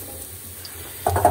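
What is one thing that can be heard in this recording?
A metal pan scrapes against a stove grate.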